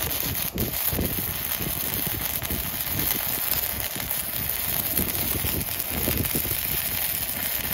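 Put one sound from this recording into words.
An electric welding arc crackles and sizzles steadily.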